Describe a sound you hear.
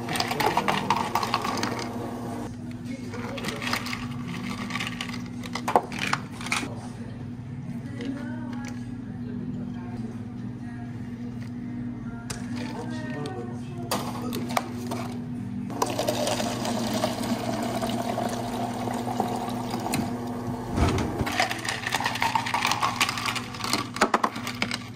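Ice cubes clatter into a glass.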